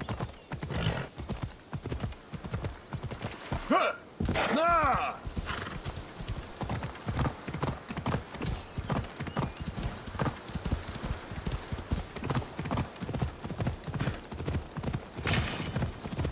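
A horse gallops with heavy, rhythmic hoofbeats.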